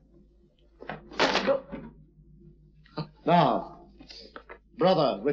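An older man speaks in a deep voice.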